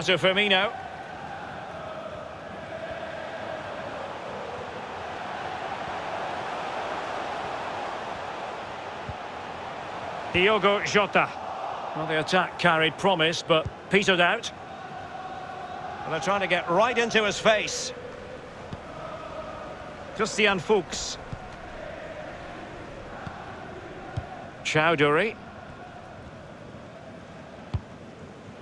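A large stadium crowd murmurs and roars steadily in the distance.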